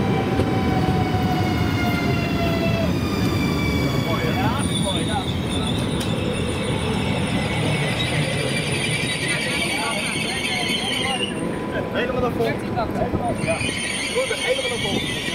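Train wheels rumble low on the rails.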